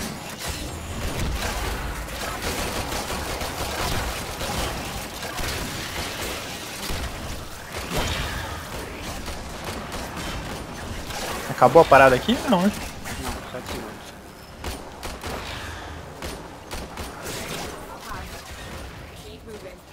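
Game weapons fire and slash with rapid impacts.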